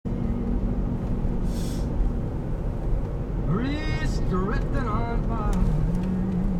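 Tyres rumble on a paved road.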